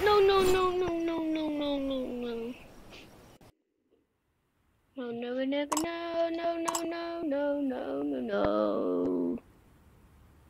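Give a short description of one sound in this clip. Cartoonish game sound effects and tones play in short bursts.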